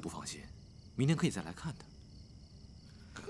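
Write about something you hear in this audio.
A second man answers warmly.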